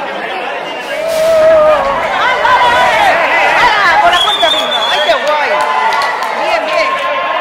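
A crowd shouts and whistles excitedly.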